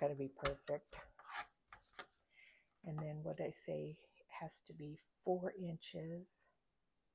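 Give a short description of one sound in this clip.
A paper trimmer blade clicks and slides as it cuts.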